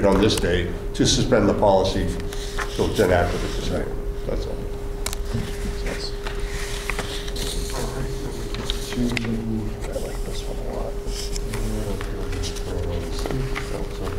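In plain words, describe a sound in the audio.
A man speaks calmly into a microphone in a large, echoing room.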